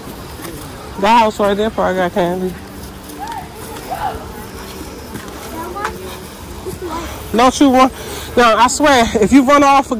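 A young child shouts loudly nearby.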